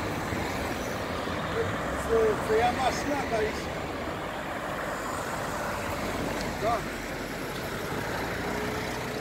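Cars drive past on an open road with a steady rush of tyres and engines.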